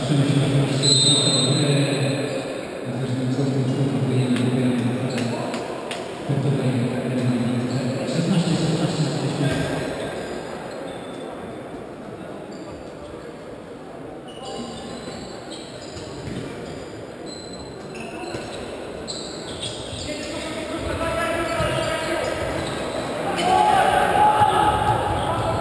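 A crowd of spectators cheers and chants in a large echoing hall.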